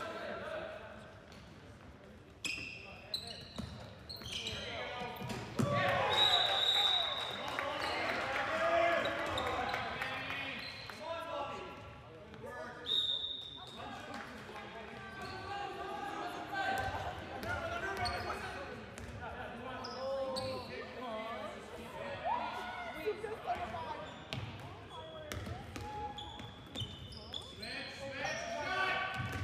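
A ball thumps on the floor and echoes in a large hall.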